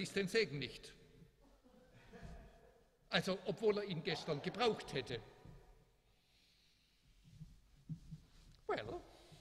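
An elderly man speaks calmly into a microphone in a room with a slight echo.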